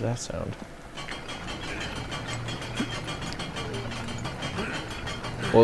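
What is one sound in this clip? A heavy crank turns with a rapid ratcheting clatter.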